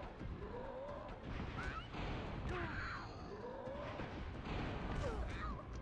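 Cartoonish heavy blows thump in a scuffle.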